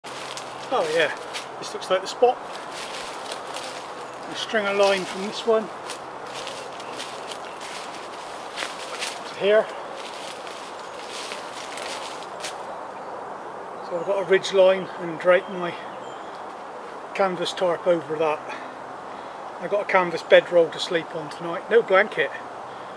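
A man speaks calmly outdoors, close by.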